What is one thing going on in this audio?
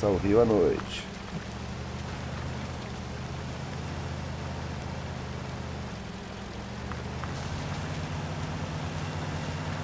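A truck engine rumbles steadily as it drives over rough ground.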